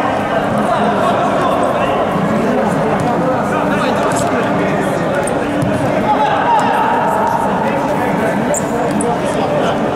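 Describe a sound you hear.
A ball thuds as players kick it in an echoing indoor hall.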